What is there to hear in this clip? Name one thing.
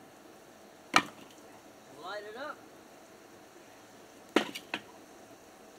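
Logs of wood knock and thud as they are dropped onto a fire.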